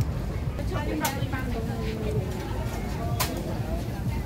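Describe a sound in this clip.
Metal tongs clink against a tray.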